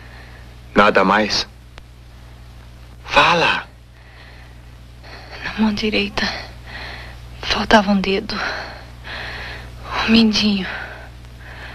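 A man speaks in a low, menacing voice, close by.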